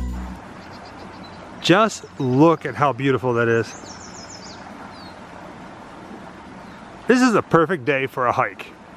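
Shallow water trickles gently over stones outdoors.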